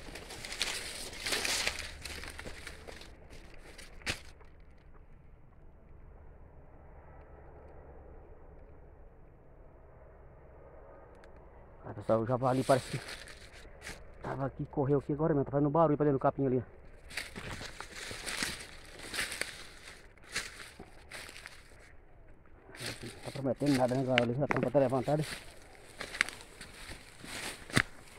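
Dry grass and stalks rustle as someone pushes through them.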